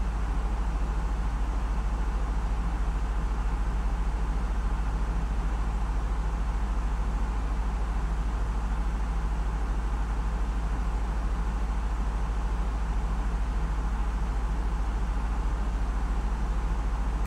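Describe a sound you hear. Jet engines hum in a steady, low drone.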